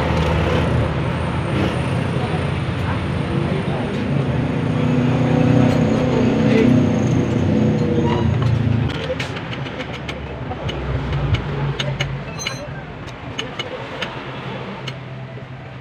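Small metal parts clink against each other.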